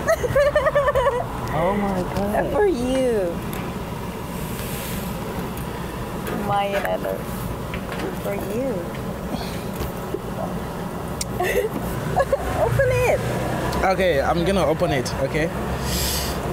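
A young woman speaks excitedly close by.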